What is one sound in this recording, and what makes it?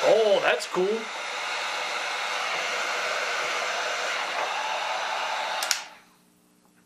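A heat gun blows with a steady whooshing roar, then stops.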